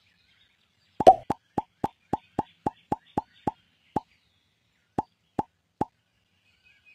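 Quick electronic pops sound one after another.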